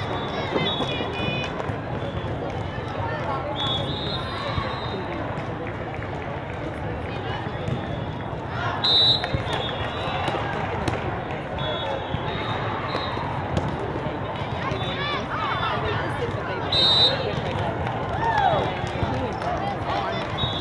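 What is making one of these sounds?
A ball thumps as players hit it.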